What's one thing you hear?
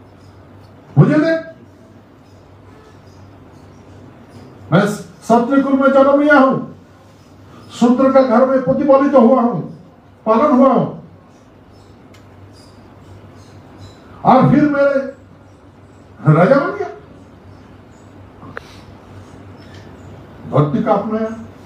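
A man speaks with emphasis into a microphone, pausing between phrases.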